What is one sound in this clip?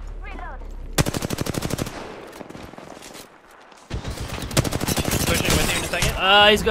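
A rifle fires rapid bursts of automatic gunfire.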